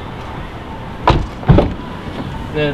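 A car door shuts with a heavy thud.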